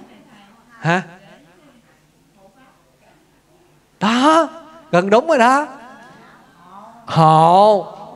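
A man speaks with animation into a microphone, his voice rising and falling in long drawn-out phrases.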